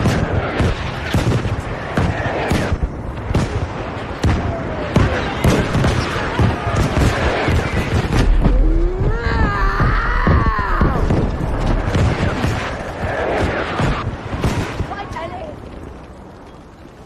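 Gunshots crack rapidly in quick bursts.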